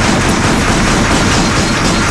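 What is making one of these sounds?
Gunshots crack rapidly in a noisy rush.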